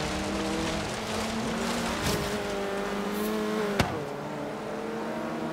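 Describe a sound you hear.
A car engine revs steadily at high speed.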